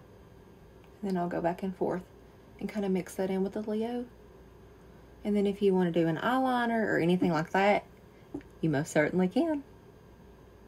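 A middle-aged woman talks calmly and cheerfully close to a microphone.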